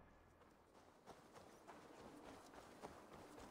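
Footsteps crunch softly through grass outdoors.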